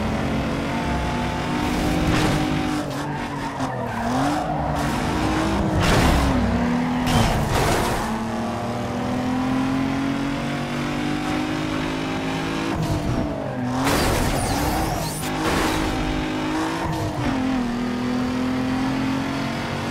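A racing car engine roars and revs up and down through gear changes.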